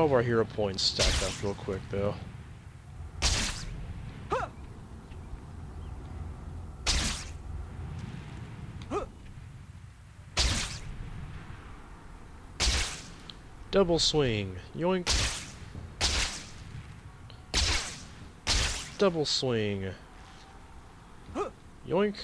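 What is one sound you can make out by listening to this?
Web lines shoot out with sharp, repeated whooshes.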